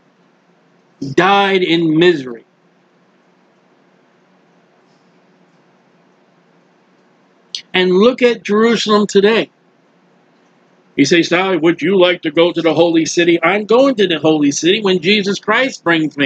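A middle-aged man speaks calmly and close to a microphone, in short bursts with pauses.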